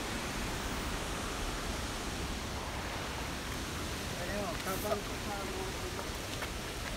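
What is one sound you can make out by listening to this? A waterfall rushes steadily nearby.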